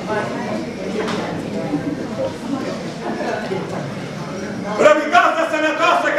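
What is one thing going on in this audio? A group of men sing together in a folk chant.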